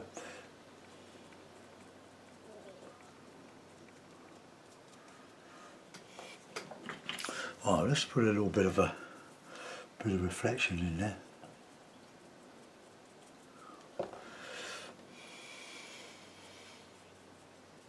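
A paintbrush dabs and brushes softly on paper.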